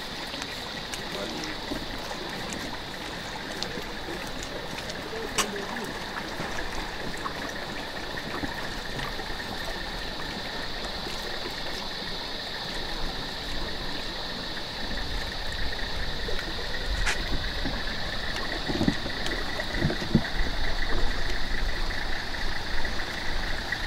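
Boots tread on a concrete bridge close by.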